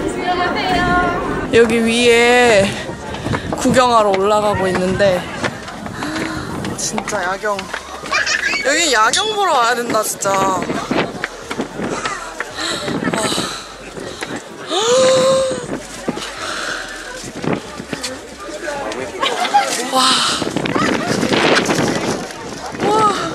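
A young woman talks and exclaims excitedly close by.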